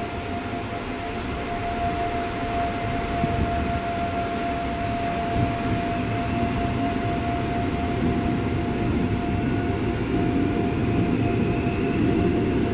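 Train wheels clatter faintly on the rails.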